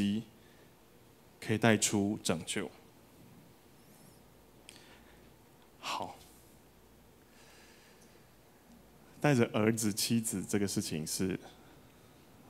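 A man speaks calmly into a microphone, heard through a loudspeaker, with pauses.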